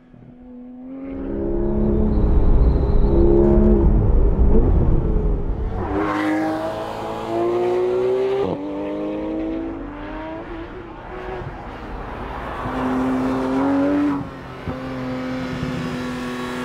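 A sports car engine roars loudly, revving up and down through gear changes.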